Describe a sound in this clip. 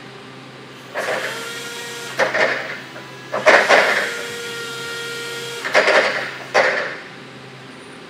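A forklift's hydraulic pump whines and hisses in short bursts.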